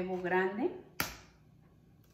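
An egg cracks against a bowl.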